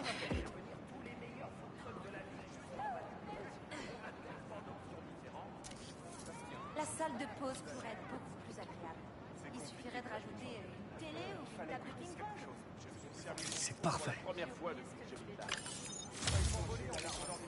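A crowd of men and women chatter nearby on a busy street.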